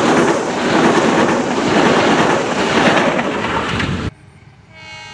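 A train rumbles past close by with a loud roar of wheels on the rails.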